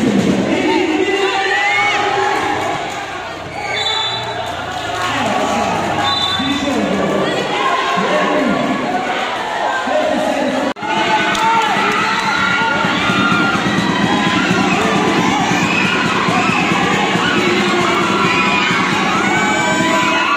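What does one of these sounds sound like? A large crowd cheers and chatters loudly in an echoing hall.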